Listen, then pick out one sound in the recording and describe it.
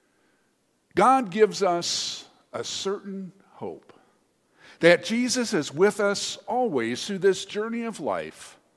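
A man reads aloud calmly in a large echoing room.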